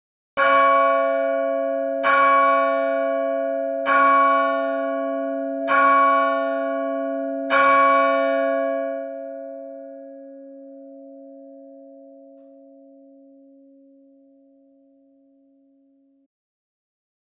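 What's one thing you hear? A large church bell tolls five slow strokes, each ringing out and the last fading away slowly.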